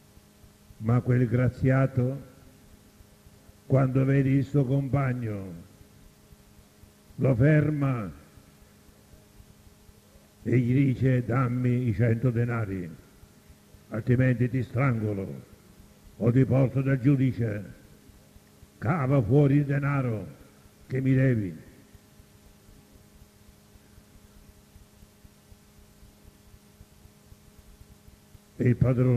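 An elderly man speaks slowly and calmly through a microphone, in short phrases with pauses.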